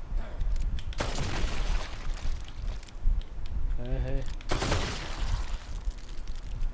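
A pistol fires loud shots that echo.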